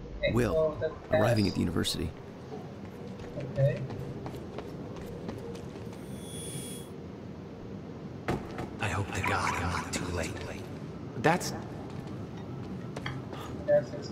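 Footsteps run across pavement.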